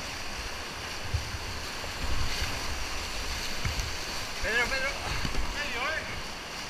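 Whitewater rushes and roars loudly close by.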